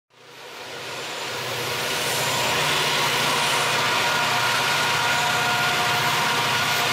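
A diesel locomotive engine rumbles close by, growing louder.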